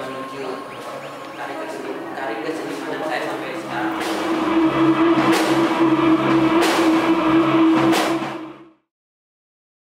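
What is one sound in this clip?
A band plays loud electric guitar and drums in a room with some echo.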